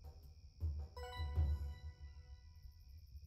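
A short bright chime rings out and fades.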